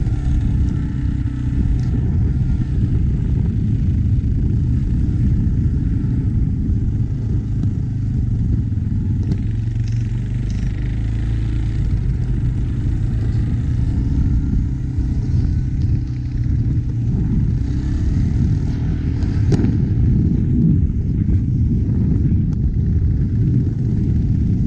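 Wind buffets the microphone with a heavy, rumbling roar.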